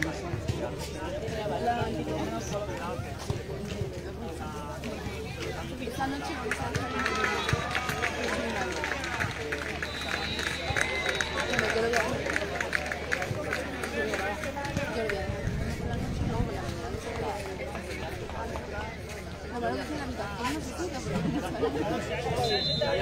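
A group of adults chat casually outdoors.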